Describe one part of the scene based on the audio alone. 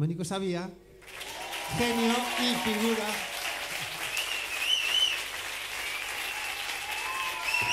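A man plays an acoustic guitar through loudspeakers in a large hall.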